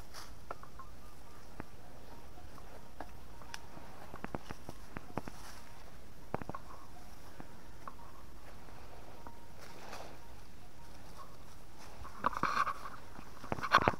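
Dry stalks and leaves rustle and snap as a person pushes through undergrowth.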